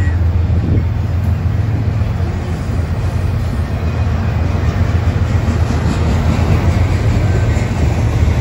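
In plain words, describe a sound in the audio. A freight train of autorack cars rumbles and clatters past over the rails.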